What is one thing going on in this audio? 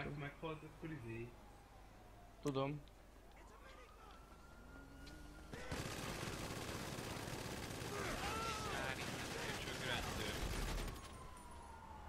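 Gunfire crackles in sharp bursts.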